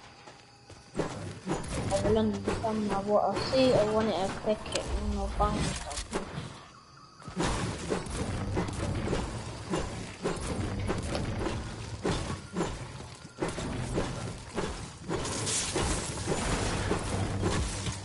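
A pickaxe strikes objects again and again.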